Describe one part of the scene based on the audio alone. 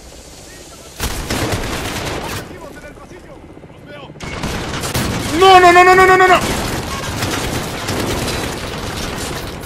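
A rifle fires in rapid bursts indoors, with loud, sharp cracks.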